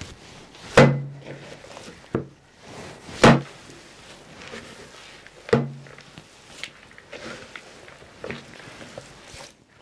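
Hands squish and knead wet dough in a bowl.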